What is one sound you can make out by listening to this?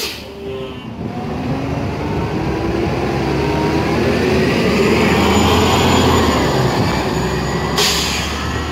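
A bus pulls away from a stop, its engine rising and then fading.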